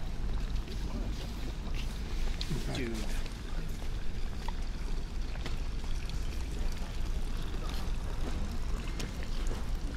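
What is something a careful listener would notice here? A man talks casually nearby.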